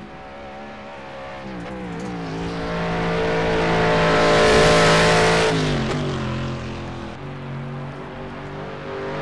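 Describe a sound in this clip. A racing car engine roars as it approaches, passes close by and fades away.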